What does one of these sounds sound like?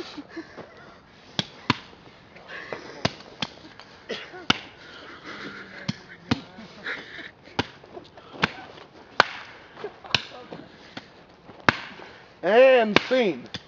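A stick strikes the ground with sharp, repeated thuds.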